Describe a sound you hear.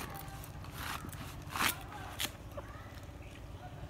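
A knife cuts through a crisp cabbage.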